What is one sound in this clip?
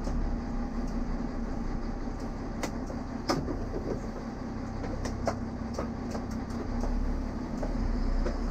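A diesel railcar idles at a stop.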